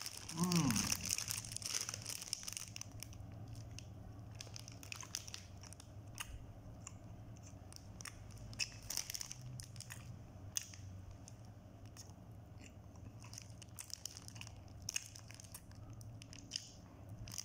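A plastic wrapper crinkles close up.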